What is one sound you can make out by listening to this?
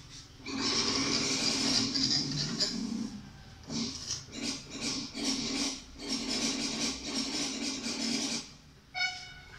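A young child sings loudly.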